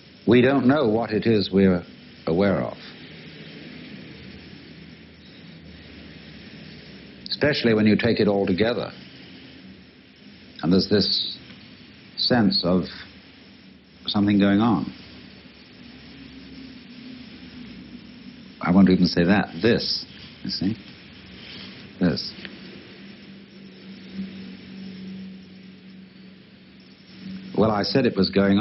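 A man speaks calmly in short phrases with pauses.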